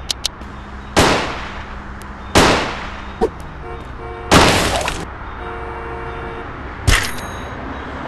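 Heavy punches land with loud, sharp thuds.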